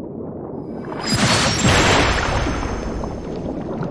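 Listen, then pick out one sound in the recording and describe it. A bright magical burst swells and shimmers.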